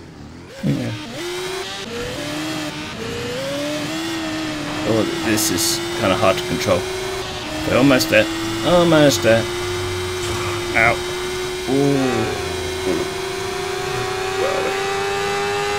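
A motorbike engine hums steadily and slowly rises in pitch.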